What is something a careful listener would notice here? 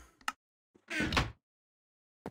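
A wooden chest thumps shut.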